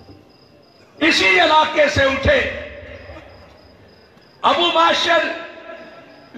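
A man speaks loudly and forcefully through a loudspeaker, with pauses between bursts.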